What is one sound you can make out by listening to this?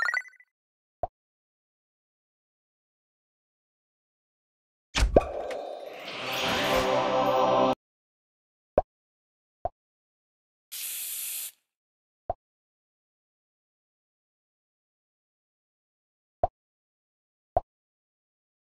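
Short menu clicks tap now and then.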